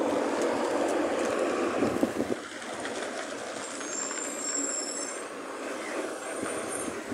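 A car drives past nearby on a road.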